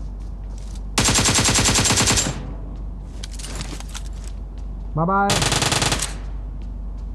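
Rapid automatic gunfire rattles in short, loud bursts.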